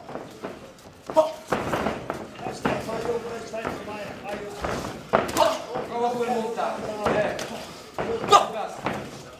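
A crowd of men and women shouts and cheers loudly.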